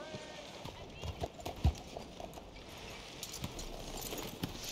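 A horse's hooves clop on a dirt street.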